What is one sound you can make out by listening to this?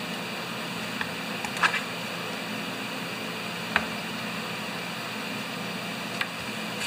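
A metal tool scrapes and knocks against a plastic part.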